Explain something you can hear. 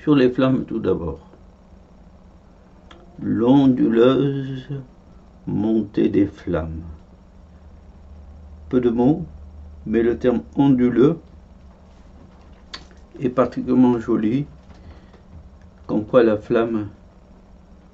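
An elderly man speaks calmly, in short phrases with pauses, heard through an online call.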